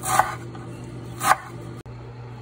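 A knife chops through fresh herbs on a wooden board.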